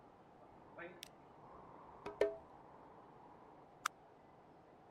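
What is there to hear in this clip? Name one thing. Short electronic clicks sound from a game menu.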